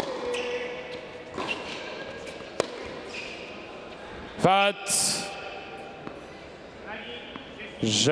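A tennis ball is struck with a racket in sharp pops.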